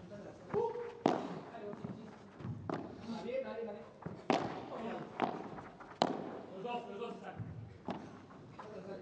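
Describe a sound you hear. Padel rackets strike a ball with sharp pops, echoing in a large hall.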